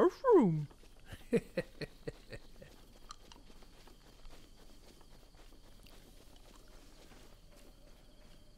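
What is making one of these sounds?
Footsteps run quickly across grass.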